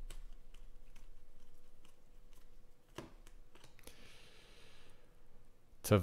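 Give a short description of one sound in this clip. Glossy trading cards slide and click against each other in hands.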